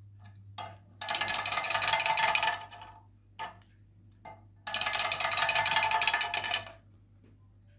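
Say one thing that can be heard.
A ceramic figure scrapes as it slides down a slate slab.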